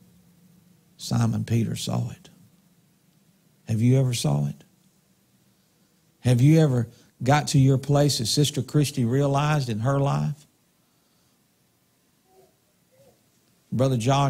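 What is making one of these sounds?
A middle-aged man speaks with animation into a microphone, in short bursts with pauses.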